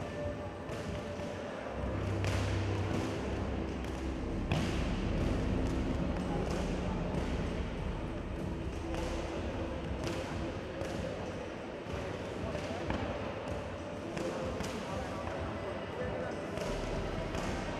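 Boxing gloves thump against padded mitts in quick bursts.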